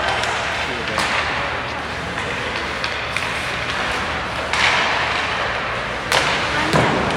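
Hockey sticks crack against a puck.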